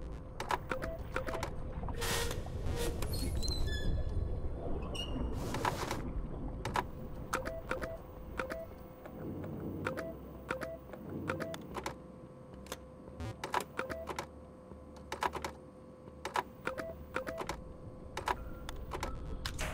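Static crackles and hisses loudly.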